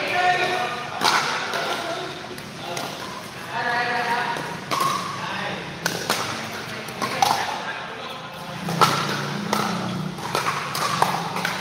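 Paddles smack a plastic ball back and forth with sharp pops.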